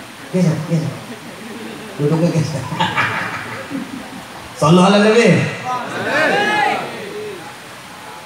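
A man speaks with animation into a microphone, heard over loudspeakers.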